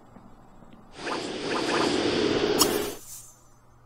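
A soft whoosh sweeps through as a game view changes.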